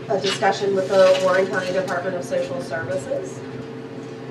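A woman speaks nearby into a microphone.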